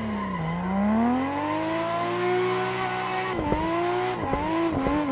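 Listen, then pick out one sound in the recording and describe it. Tyres squeal on the track.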